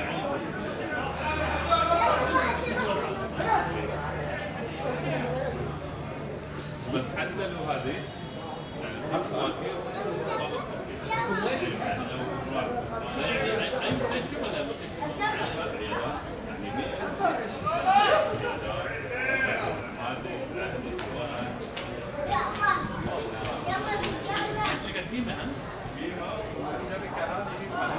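Young men shout and call to each other across an open outdoor pitch.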